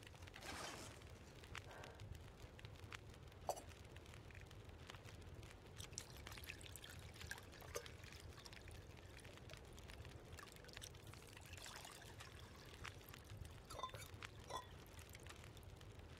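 A wood fire crackles softly in a stove.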